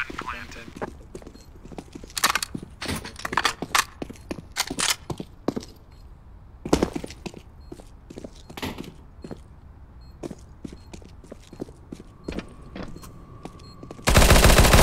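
Footsteps clatter on hard ground and stairs.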